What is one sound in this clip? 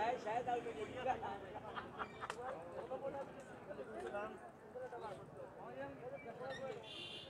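Several young men talk with animation nearby outdoors.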